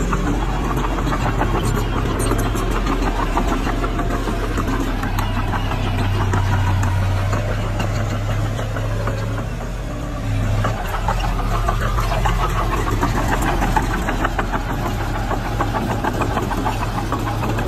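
Dirt and rocks scrape and tumble as a bulldozer pushes them.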